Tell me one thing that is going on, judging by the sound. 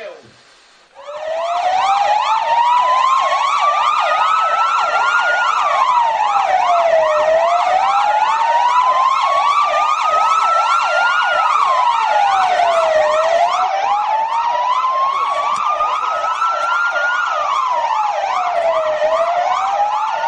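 A siren wails loudly up and down, close by.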